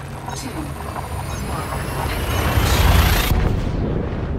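A rushing roar swells and then cuts off abruptly.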